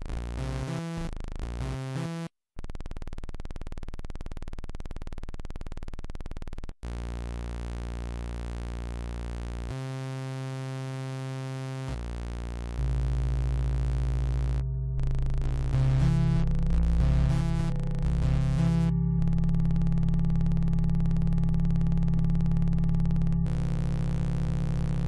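A synthesizer drone buzzes steadily, shifting in pitch and tone, with brief cut-offs.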